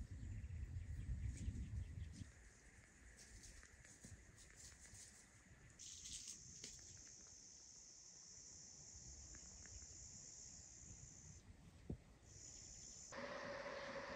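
Grass rustles as hands pick plants.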